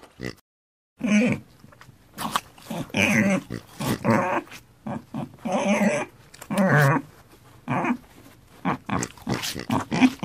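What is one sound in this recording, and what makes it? Pigs grunt and snort up close.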